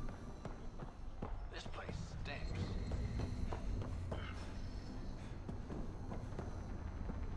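Footsteps tap on a metal floor.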